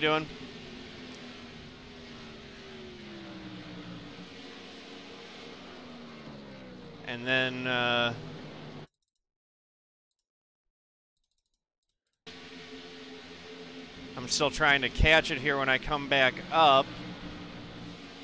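Race car engines drone and shift in pitch.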